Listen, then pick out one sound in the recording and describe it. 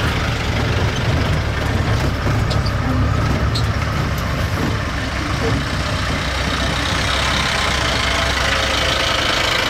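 An open vehicle's engine rumbles steadily as it drives along.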